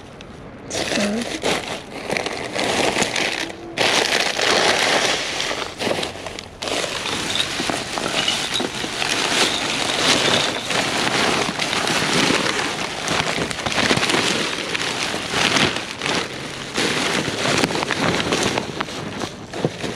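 Plastic trash bags crinkle and rustle as a gloved hand rummages through them.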